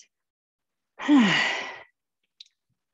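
A young woman breathes out loudly.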